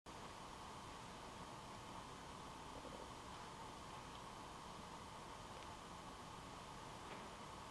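A mandolin is plucked softly.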